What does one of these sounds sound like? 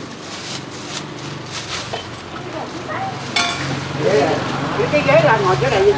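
A spoon clinks against a metal pot.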